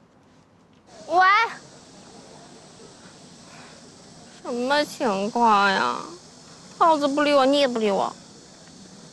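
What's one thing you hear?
A young woman speaks on a phone.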